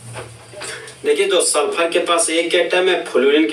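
A young man speaks clearly into a close microphone.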